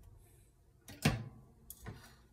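A small oven door shuts with a metallic clunk.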